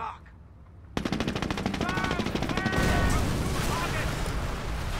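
Gunfire crackles in a battle.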